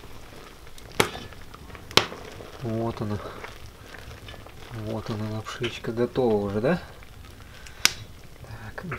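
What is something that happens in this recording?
A metal utensil clinks and scrapes against a pan.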